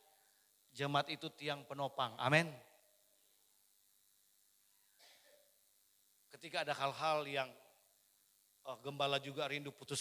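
A man speaks with animation through a microphone and loudspeakers, in short bursts with pauses.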